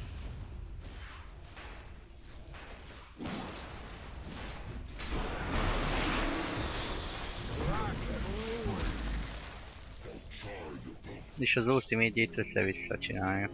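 Fantasy game combat sounds of spells whooshing and weapons striking play throughout.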